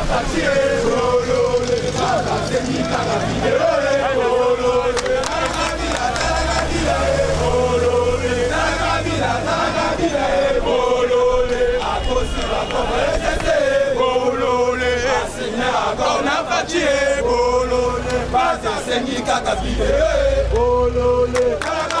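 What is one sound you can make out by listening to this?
Men shout with excitement close by.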